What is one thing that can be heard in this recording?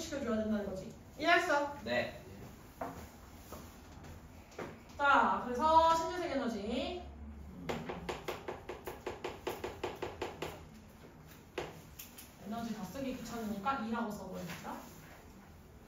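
A young woman speaks calmly and clearly, close by.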